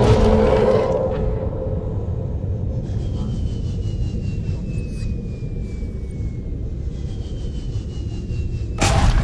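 Deep water rumbles and churns in a low, steady drone.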